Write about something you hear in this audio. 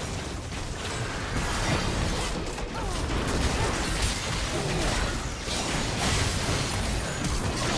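Game combat hits thud and clash.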